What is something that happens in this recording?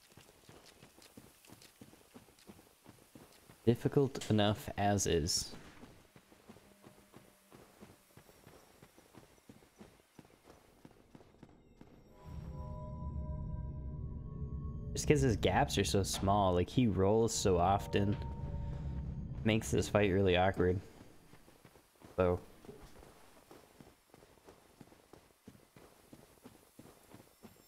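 Armoured footsteps thud steadily on the ground.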